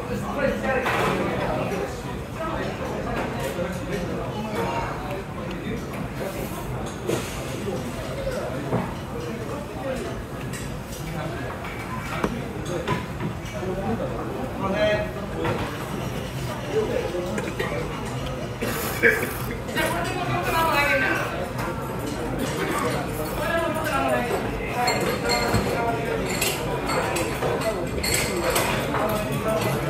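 Many voices of men and women chatter in the background of a busy room.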